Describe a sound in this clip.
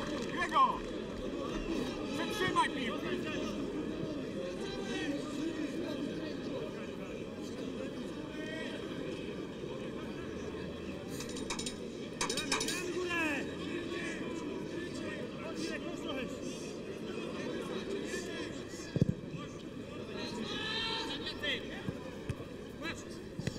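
A football crowd murmurs and chants in an open-air stadium.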